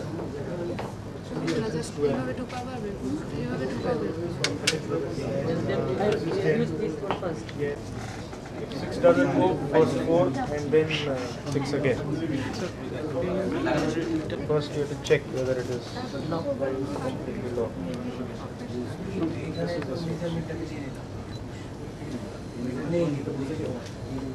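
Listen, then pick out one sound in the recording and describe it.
Several people talk in a murmur in a room.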